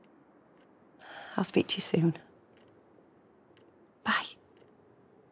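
A young woman speaks quietly and anxiously into a phone, close by.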